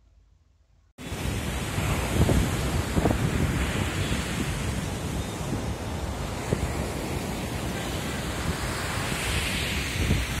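Waves wash onto a beach with a steady rushing roar.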